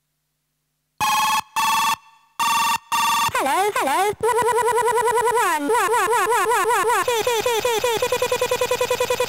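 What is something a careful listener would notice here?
An electronic noise box beeps and warbles in quick pulsing tones.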